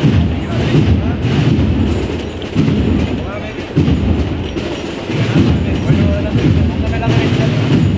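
A crowd of men and women chatters loudly outdoors.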